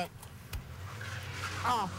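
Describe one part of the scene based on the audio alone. Car tyres scrape on the road surface.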